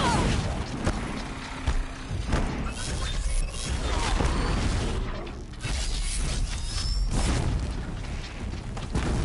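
Blows and impacts thud sharply during a fight.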